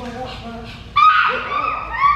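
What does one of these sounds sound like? A young woman shouts loudly.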